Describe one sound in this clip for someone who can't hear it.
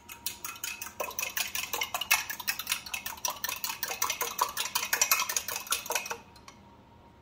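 Butter sizzles and crackles in a hot pan.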